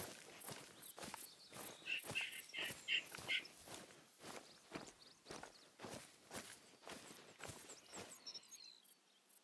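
Footsteps swish and crunch through tall grass at a steady walking pace.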